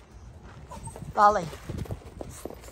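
A dog gives a short high whine.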